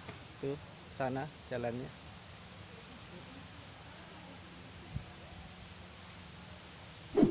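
A man speaks calmly close to the microphone, outdoors.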